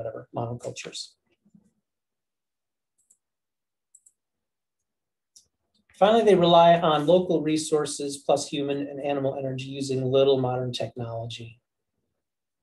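A man speaks calmly through an online call microphone, in short bursts with pauses.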